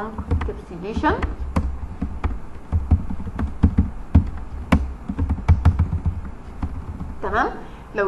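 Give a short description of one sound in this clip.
Keys clatter quickly on a keyboard.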